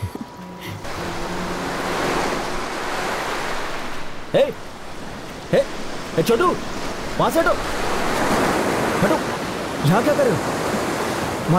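Waves crash and wash onto a shore.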